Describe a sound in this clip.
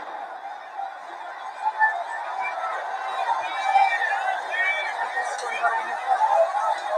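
A crowd shouts in the distance outdoors.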